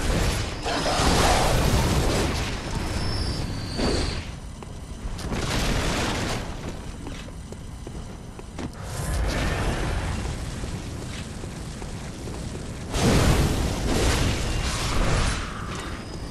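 Heavy weapon blows whoosh and crash in bursts.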